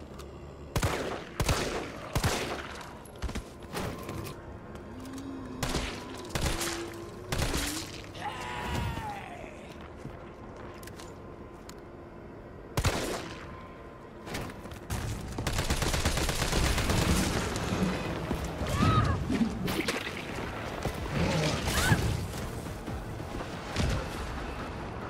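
Rifle gunshots crack out in short bursts.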